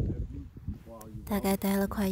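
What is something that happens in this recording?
A young woman speaks cheerfully close to the microphone.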